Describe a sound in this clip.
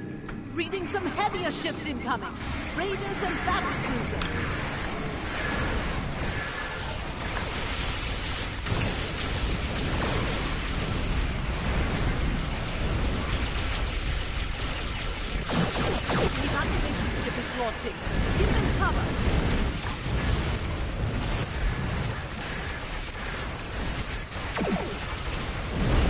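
Explosions rumble deeply in a space battle game.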